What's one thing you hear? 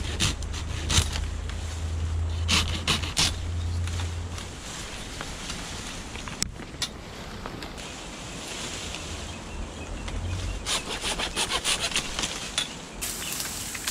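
Dry leaves rustle and crackle as bamboo stalks are pushed aside.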